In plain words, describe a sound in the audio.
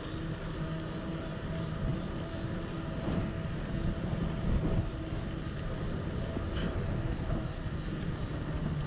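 Wind rushes loudly and steadily past a moving rider outdoors.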